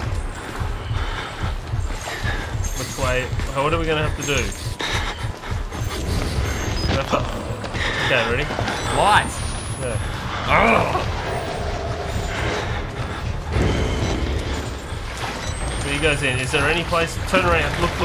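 Two young men talk and react with animation through headset microphones.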